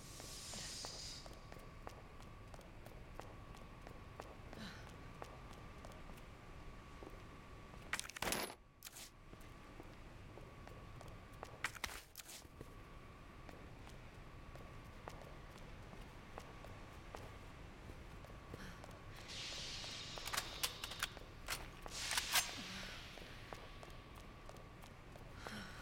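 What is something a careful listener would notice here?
Footsteps tread on a hard floor.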